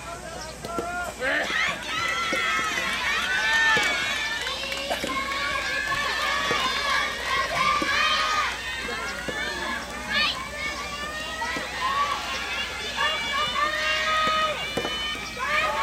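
A tennis ball is struck with a racket with a sharp pop.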